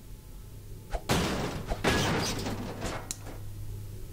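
A metal grate bangs loose and clatters onto a hard floor.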